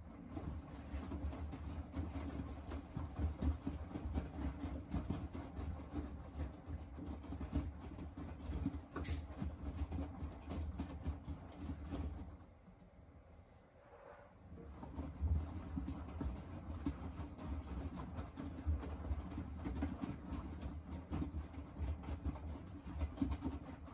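A washing machine drum turns with a low, steady rumble.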